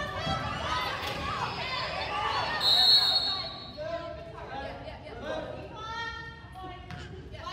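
Spectators chatter in a large echoing gym.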